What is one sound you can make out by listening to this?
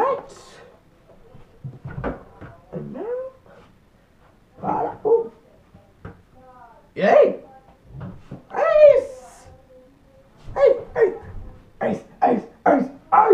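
A young man talks and exclaims loudly, close by.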